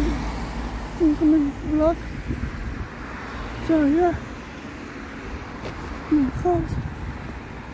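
A young man speaks in short bursts, close up.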